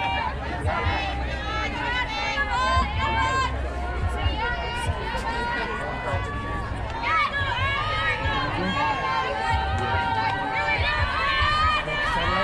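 Girls and women shout and cheer close by, outdoors.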